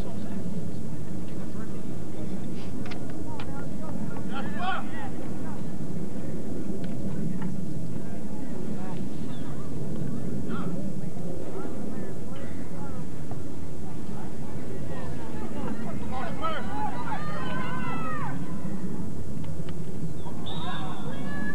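A crowd of spectators murmurs outdoors.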